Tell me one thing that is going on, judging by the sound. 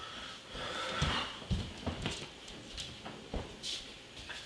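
Bare feet thud on a wooden floor.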